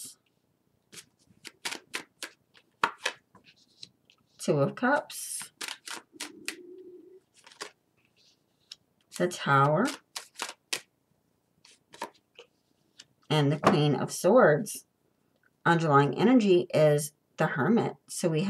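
Playing cards are laid down one by one onto a table with soft slaps.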